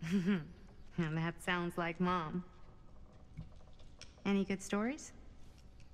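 A young woman speaks in a light, casual voice.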